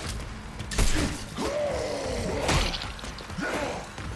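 A creature snarls and shrieks.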